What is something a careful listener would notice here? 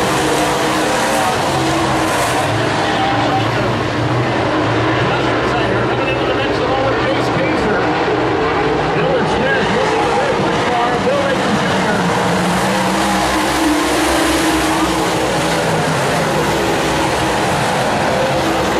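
Race car engines roar loudly around a dirt track.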